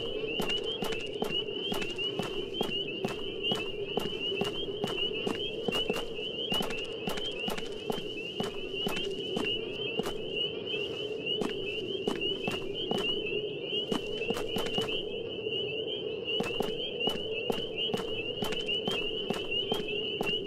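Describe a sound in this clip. Quick footsteps tap on hard pavement.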